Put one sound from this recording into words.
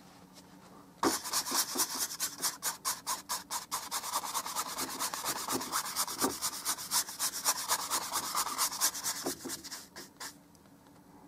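A paintbrush scrubs rhythmically against canvas.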